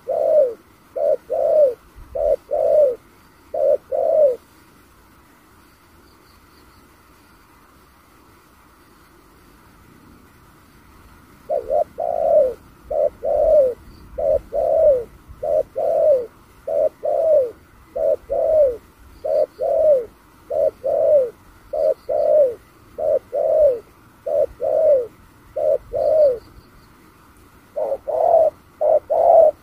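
A dove coos in short repeated calls nearby.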